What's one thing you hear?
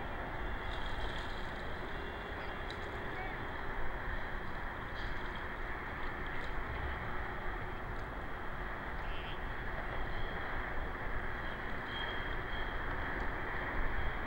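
Water ripples and laps gently in the open air.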